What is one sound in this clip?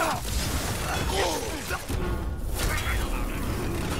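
Fiery blasts burst with a crackle.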